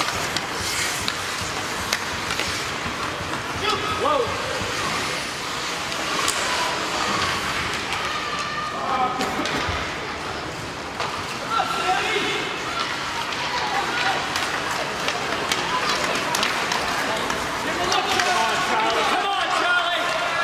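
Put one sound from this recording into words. Ice skates scrape and carve across an indoor rink.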